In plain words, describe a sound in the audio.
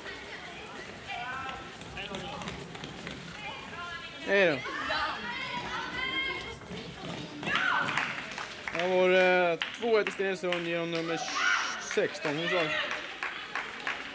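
Children shout and call out across a large echoing sports hall.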